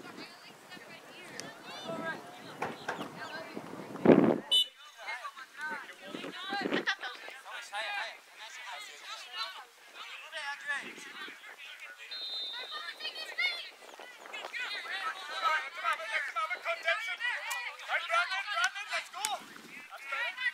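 Young boys shout and call out to each other across an open field.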